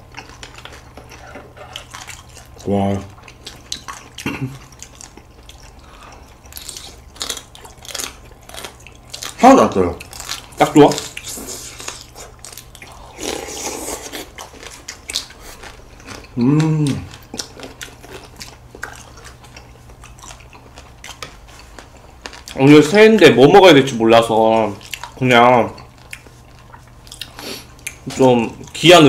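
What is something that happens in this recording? Two young men chew food with wet, smacking sounds.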